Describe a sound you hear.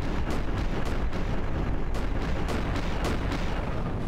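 Explosions boom and rumble in quick succession.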